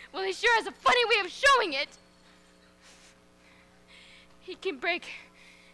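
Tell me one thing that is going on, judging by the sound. A man speaks loudly and with expression from a stage.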